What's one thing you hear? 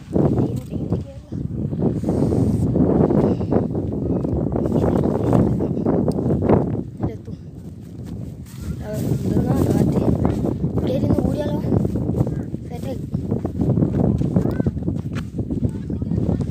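A young boy talks with animation, close to the microphone.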